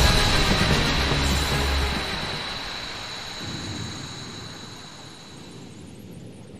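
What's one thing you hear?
A loud whooshing rumble swells and slowly fades away.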